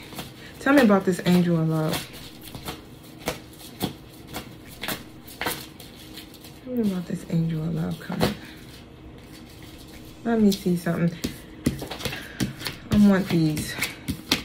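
Cards tap and shuffle in a young woman's hands.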